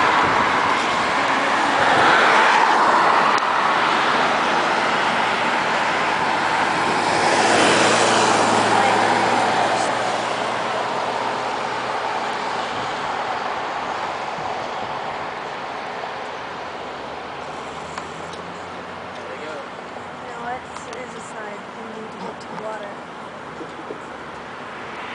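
A huge flock of birds chatters and twitters overhead.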